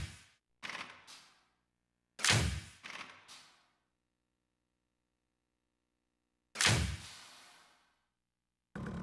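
Short whooshing menu sounds play one after another.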